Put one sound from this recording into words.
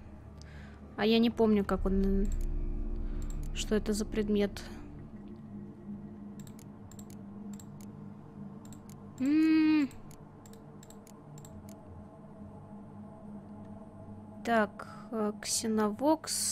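Short pitched menu chimes sound several times.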